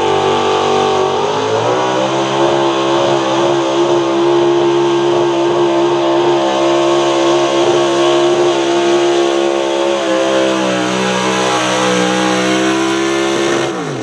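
A pickup truck's engine roars loudly at full throttle.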